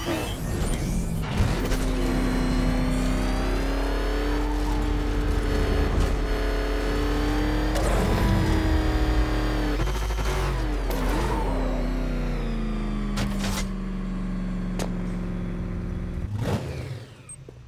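A powerful engine roars and revs as a vehicle speeds along.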